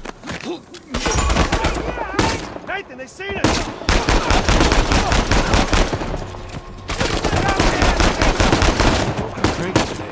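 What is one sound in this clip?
Rapid gunshots crack and echo close by.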